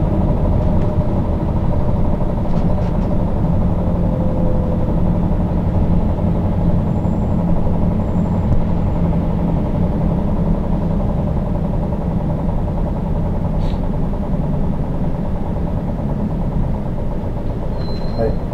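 A vehicle's engine hums steadily from inside.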